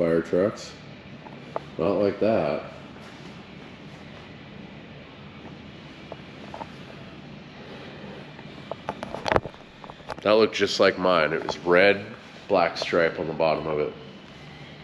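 A man talks with animation close to the microphone.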